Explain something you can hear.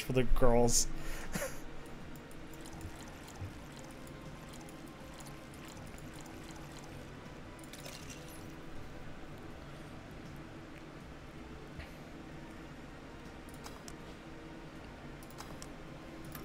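Soft electronic clicks sound as a drink is mixed in a game.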